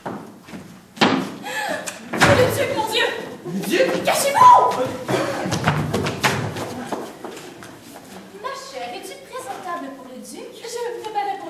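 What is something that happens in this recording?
A woman speaks loudly and with animation.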